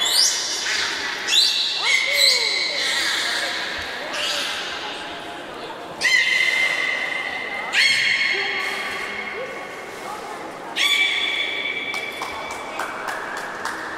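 A beluga whale whistles and squeals in high, sliding chirps.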